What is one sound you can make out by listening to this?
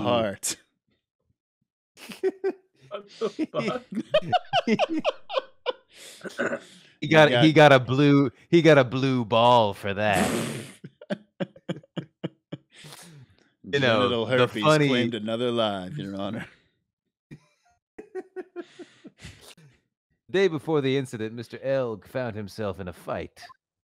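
A young man laughs heartily.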